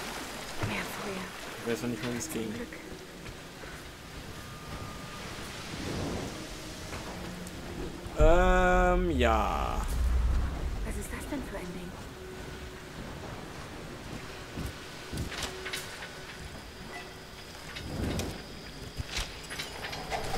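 Water rushes and churns steadily.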